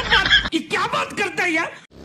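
A man speaks loudly and excitedly.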